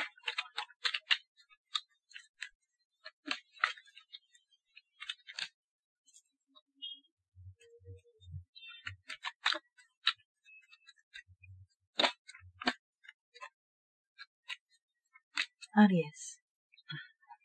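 Playing cards snap and flick against fingers in quick bursts.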